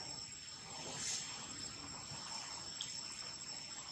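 Dry leaves rustle softly as a baby monkey scampers over the ground.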